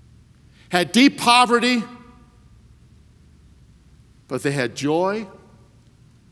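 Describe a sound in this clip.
A man speaks with emphasis through a microphone in a large room, with pauses between phrases.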